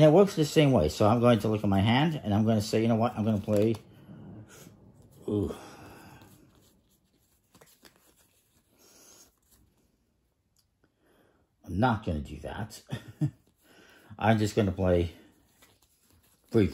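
Playing cards rustle and slide softly in a hand.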